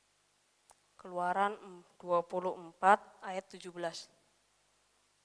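A young woman speaks with animation into a microphone through loudspeakers.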